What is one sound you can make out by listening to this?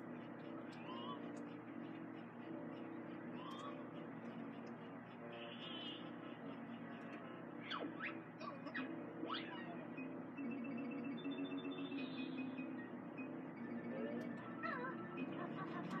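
Video game sound effects chirp and whoosh.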